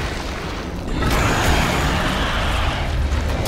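Flesh bursts apart with a wet splatter.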